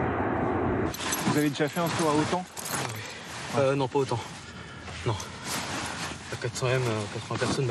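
A young man speaks, slightly out of breath, close by outdoors.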